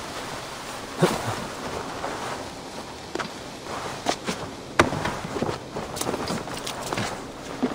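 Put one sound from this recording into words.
Straw rustles and crunches as someone climbs a thatched roof.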